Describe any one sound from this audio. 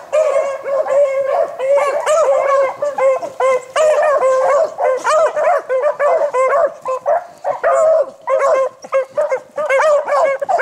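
Several hounds bay and howl loudly, close by, outdoors.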